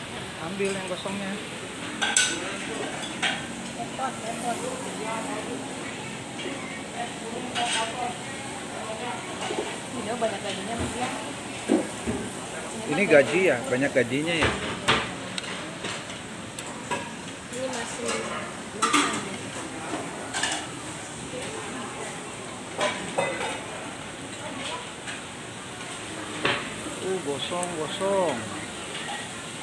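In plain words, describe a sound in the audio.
A restaurant crowd murmurs in the background.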